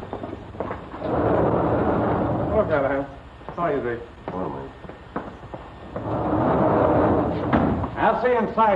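A heavy barred metal gate rattles and slides.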